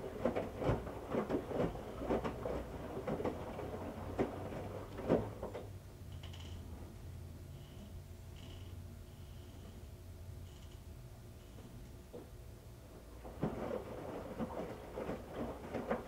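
Wet laundry sloshes and thumps inside a washing machine drum.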